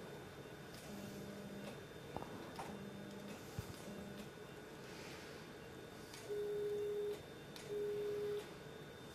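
A surgical energy device beeps in short, steady tones.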